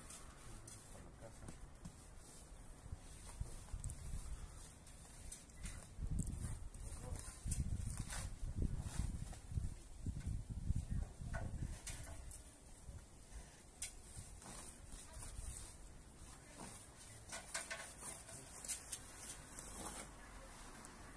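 An aluminium ladder clanks and rattles as someone climbs it.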